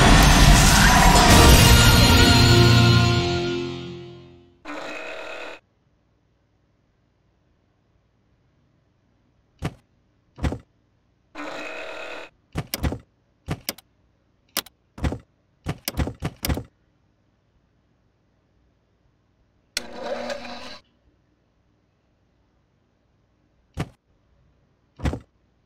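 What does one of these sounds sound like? Short electronic game sounds chime and click now and then.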